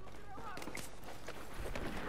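Gunshots ring out with bullets striking a wall.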